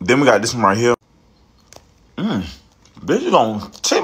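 A young man chews candy.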